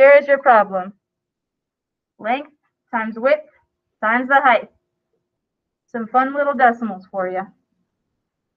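A woman speaks calmly through an online call microphone, in short phrases.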